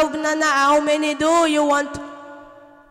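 A teenage boy sings out a loud, drawn-out note close by.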